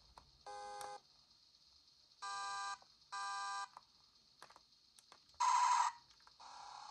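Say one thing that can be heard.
A handheld game console plays short electronic beeps and tones.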